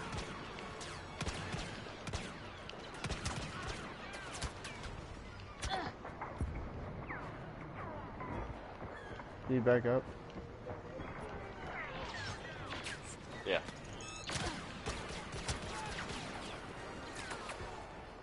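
Blaster rifle shots fire in quick bursts.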